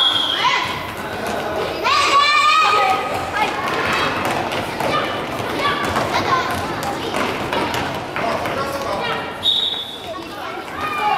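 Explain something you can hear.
Young children shout and call out excitedly in a large echoing hall.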